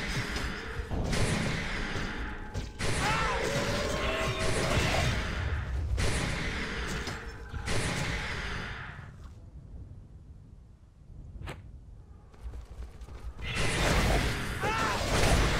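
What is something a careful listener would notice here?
Magic spells burst and crackle in a noisy battle.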